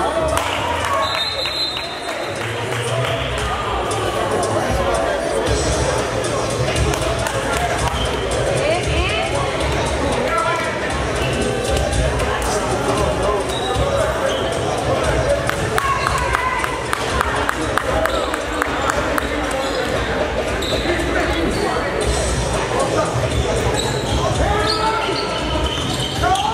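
A crowd of men and women chatters and calls out in an echoing gym.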